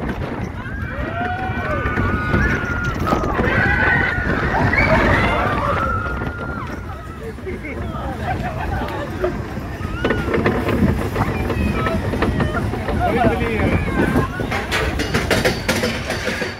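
Riders scream and shout with excitement around the car.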